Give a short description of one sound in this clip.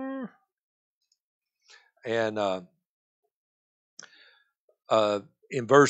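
An elderly man reads aloud slowly through a microphone, with pauses.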